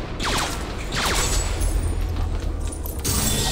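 Toy bricks burst apart with a scattering clatter.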